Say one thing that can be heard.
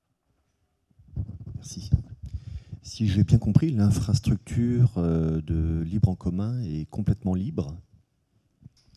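A man speaks through a microphone in a large room.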